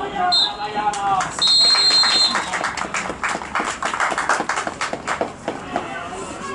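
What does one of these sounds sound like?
A crowd of spectators claps and applauds.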